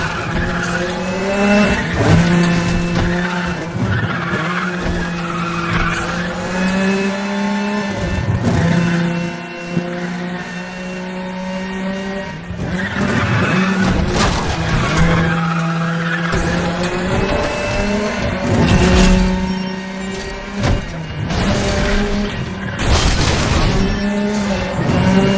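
A racing car engine roars at high revs, rising and dropping in pitch as it shifts gears.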